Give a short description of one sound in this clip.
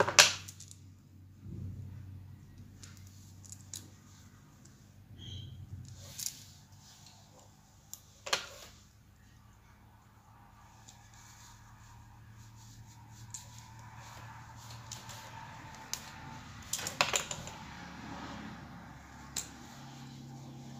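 Metal plates click and scrape as a thin tool pries between them.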